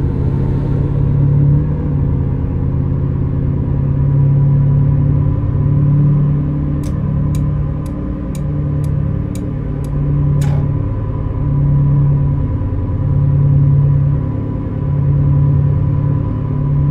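A car engine hums steadily while driving at speed.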